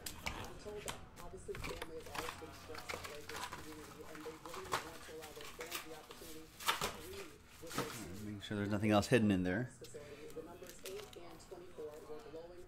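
Card packs rustle and crinkle in hands.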